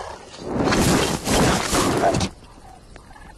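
A heavy ball of rocks crashes to the ground with a loud thud.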